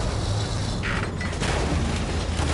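A large explosion booms nearby.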